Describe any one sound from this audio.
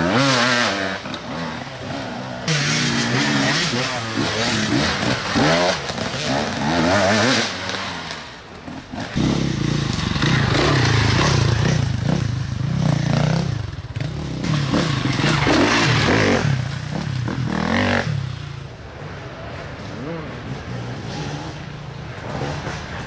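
A dirt bike engine revs and snarls as it climbs a trail.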